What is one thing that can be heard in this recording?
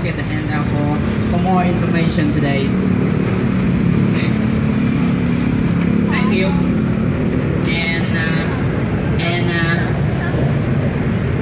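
Young women talk and chatter nearby.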